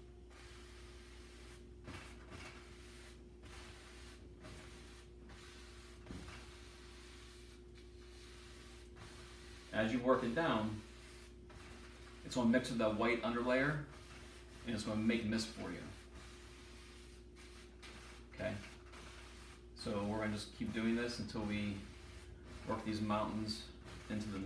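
A brush dabs and scrapes softly on canvas.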